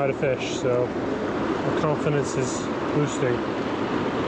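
A fishing reel clicks as line is pulled.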